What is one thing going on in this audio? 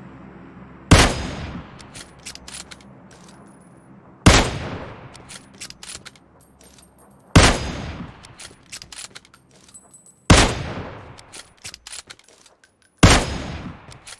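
A sniper rifle fires loud single shots that echo away.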